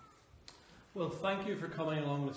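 A man speaks clearly and loudly, close to a microphone.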